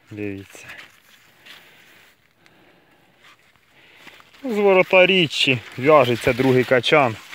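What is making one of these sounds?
Corn leaves rustle as a hand brushes through them.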